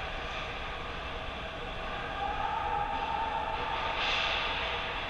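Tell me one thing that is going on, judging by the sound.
Skates scrape on ice in a large echoing rink.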